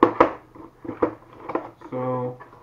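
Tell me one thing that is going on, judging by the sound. Cardboard packaging rustles and taps as a man handles a box.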